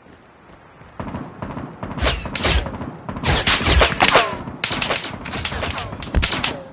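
Footsteps thud quickly across a roof.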